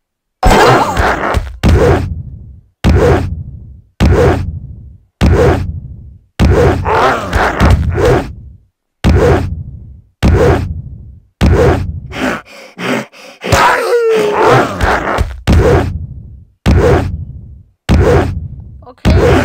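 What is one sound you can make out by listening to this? A heavy block thuds down again and again at an even pace, each thud booming and fading.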